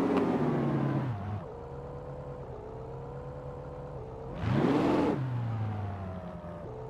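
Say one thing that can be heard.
A sports car engine idles and revs sharply.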